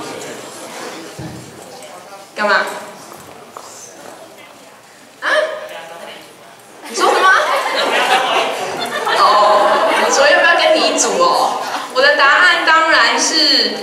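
A young woman speaks through a microphone and loudspeakers in a large echoing hall.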